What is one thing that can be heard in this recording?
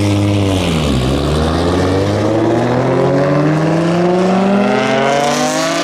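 Two cars launch and accelerate hard, engines climbing in pitch.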